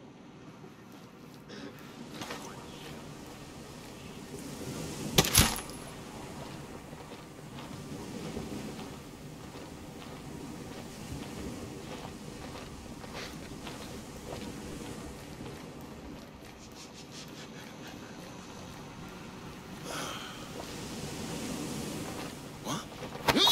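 Boots step softly on a hard floor.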